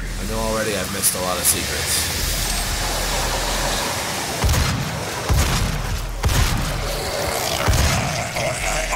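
A shotgun fires in loud, sharp blasts.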